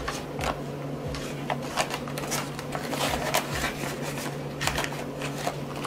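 Paper money rustles and crinkles as it is handled.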